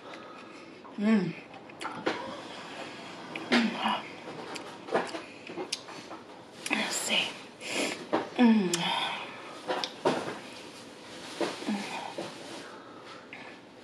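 A young woman speaks close to a microphone, calmly and chattily.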